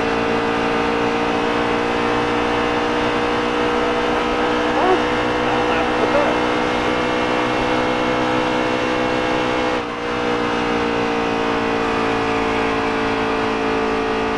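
A racing truck engine roars loudly at high speed, its pitch dipping briefly and then holding steady.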